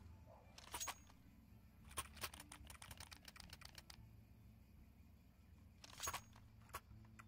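A knife swishes through the air in quick flicks.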